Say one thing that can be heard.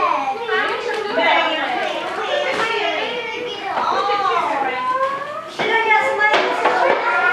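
Young children talk and chatter nearby.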